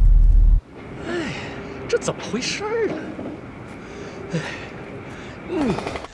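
A middle-aged man speaks with puzzlement nearby.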